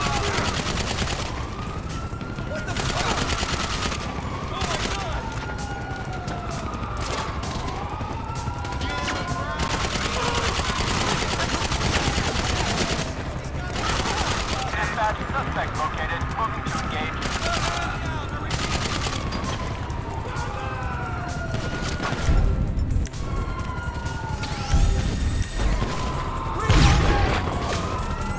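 Police sirens wail, rising and falling.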